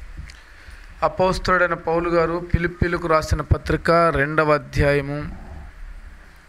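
A man speaks through a microphone and loudspeakers in a calm, preaching voice.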